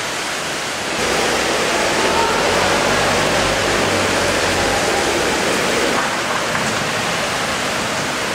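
A car drives slowly through deep water, splashing.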